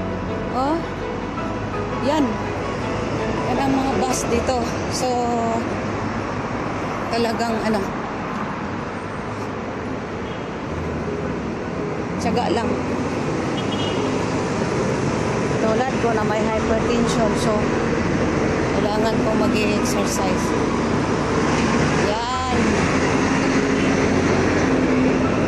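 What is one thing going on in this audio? A bus drives past.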